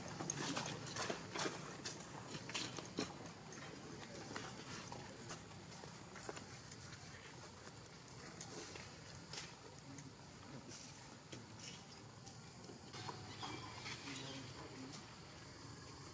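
Dry leaves rustle and crackle as monkeys scuffle on the ground.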